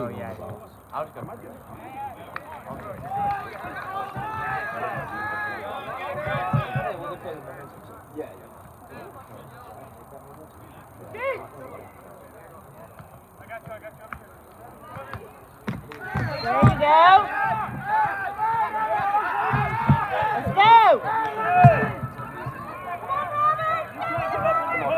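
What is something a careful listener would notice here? Young players shout and call out to each other across an open field outdoors.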